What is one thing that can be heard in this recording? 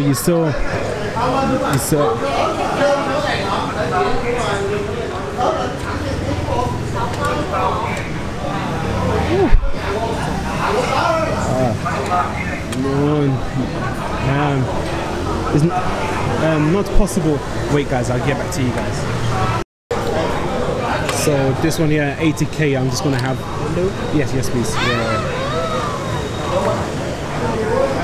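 A crowd of adults chatters all around.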